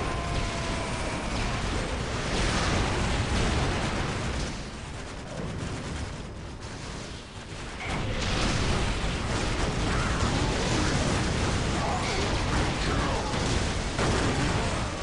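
Gunfire and explosions crackle and boom in a loud battle.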